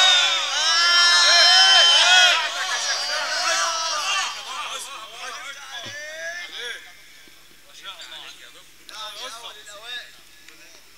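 A crowd of men chants loudly and fervently, echoing through a large hall.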